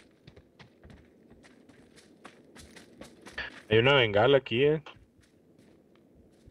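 Footsteps run quickly over dry ground.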